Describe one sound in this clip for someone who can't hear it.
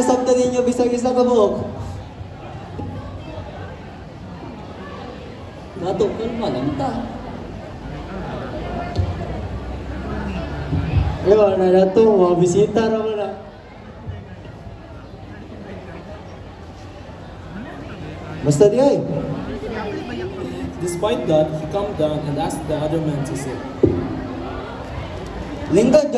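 A young man speaks with feeling through a loudspeaker.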